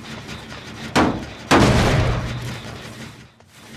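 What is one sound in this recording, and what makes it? A machine is struck with a loud metallic crash.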